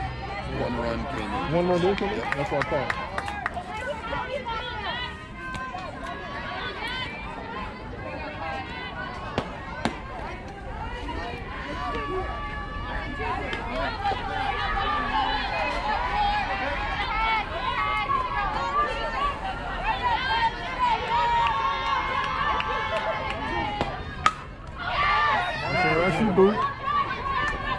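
Young women shout and chatter across an open field.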